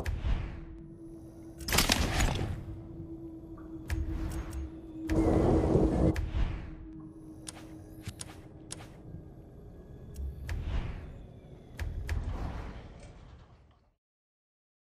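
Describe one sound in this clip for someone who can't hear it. Game menu clicks and swooshes sound as selections change.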